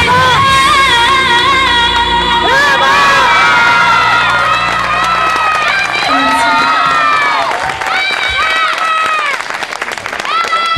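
A young woman sings through a microphone in a large hall.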